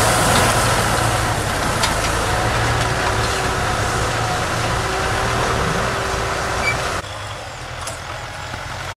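Plough discs churn through soil.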